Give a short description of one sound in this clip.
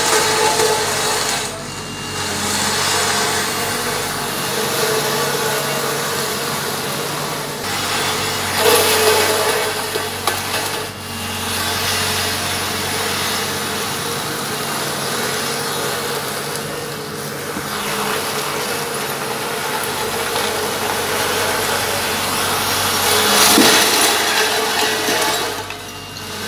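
A road roller engine rumbles steadily.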